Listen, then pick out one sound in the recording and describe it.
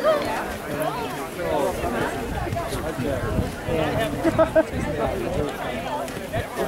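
A crowd of spectators chatters and cheers loudly outdoors.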